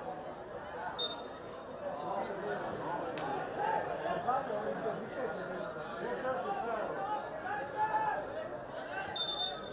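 A whistle blows sharply in the distance.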